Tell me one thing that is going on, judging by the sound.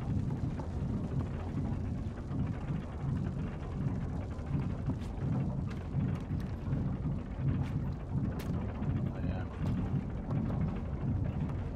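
Small footsteps patter on wooden boards.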